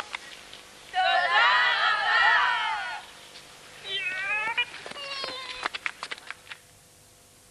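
A group of girls shout and cheer outdoors.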